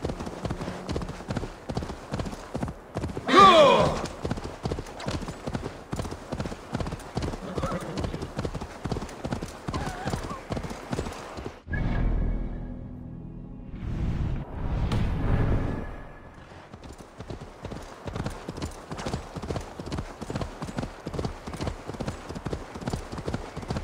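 Horse hooves clop quickly and steadily on a stony path.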